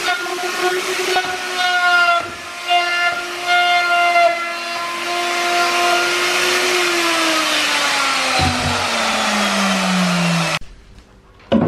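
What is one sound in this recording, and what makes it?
A large router whines loudly while cutting wood, then winds down.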